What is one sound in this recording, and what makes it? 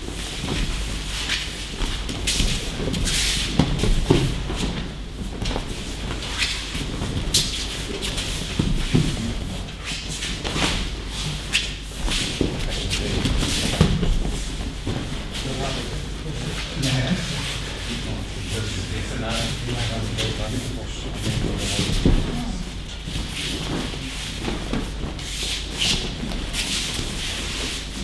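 Bare feet shuffle and slap on mats.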